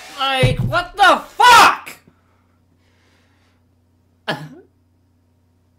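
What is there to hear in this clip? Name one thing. A young woman shouts with animation into a close microphone.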